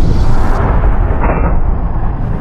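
A revolver fires a loud shot.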